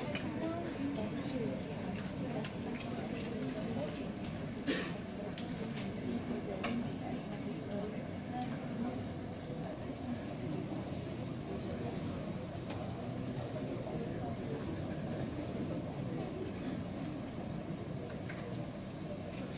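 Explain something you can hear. A crowd of men and women murmurs and chatters throughout a large echoing hall.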